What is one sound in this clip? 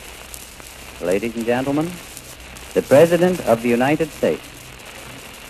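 A middle-aged man speaks slowly and deliberately, heard through a crackly old recording.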